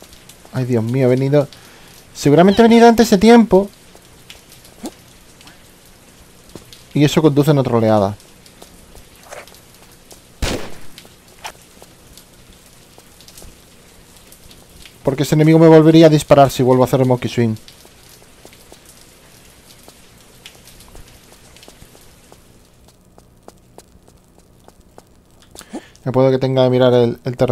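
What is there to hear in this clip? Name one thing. A man talks animatedly into a close microphone, in short bursts.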